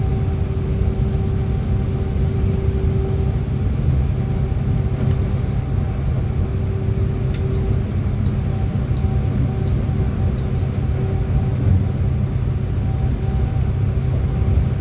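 Tyres roar on the road through a tunnel.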